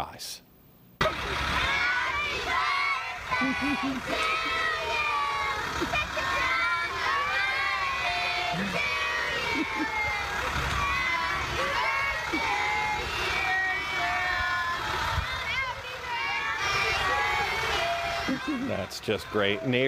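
Many children chatter and call out noisily outdoors.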